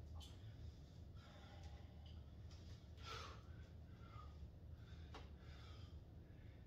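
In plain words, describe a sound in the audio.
A man breathes hard with effort.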